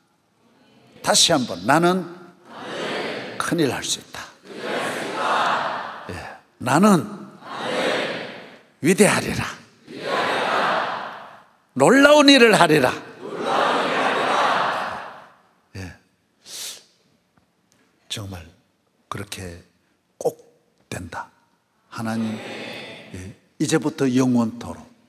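A middle-aged man speaks with animation through a microphone in a large echoing hall.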